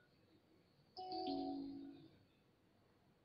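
A short game jingle plays for a lost round.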